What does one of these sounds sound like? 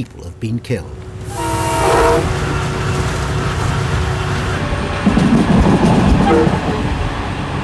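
A train rumbles and clatters along the rails at speed.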